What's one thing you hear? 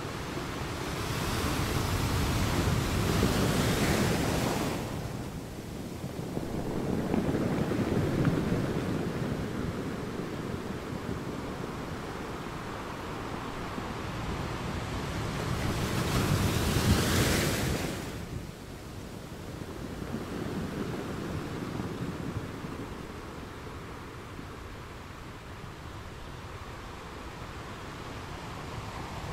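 Foamy water washes and hisses over the rocks.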